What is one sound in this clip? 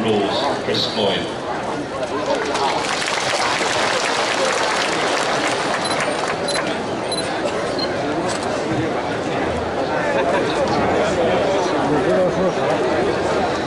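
A large outdoor crowd chatters steadily.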